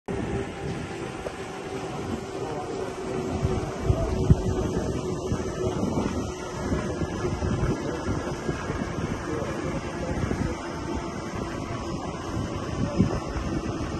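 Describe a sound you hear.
A helicopter engine hums steadily nearby.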